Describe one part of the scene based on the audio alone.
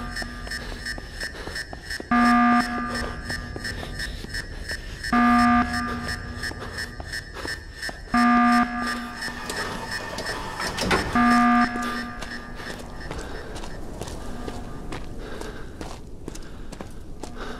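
Footsteps crunch on leaves and forest ground.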